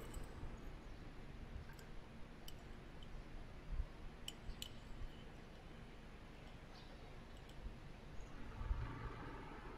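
A censer's metal chain clinks softly.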